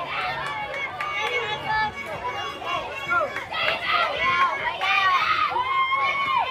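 Children shout and cheer loudly outdoors.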